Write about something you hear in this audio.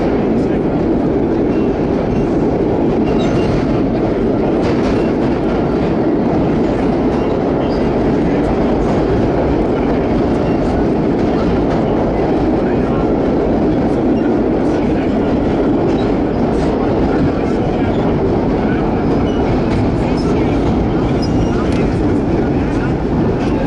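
Steel wheels squeal and clatter on the rails.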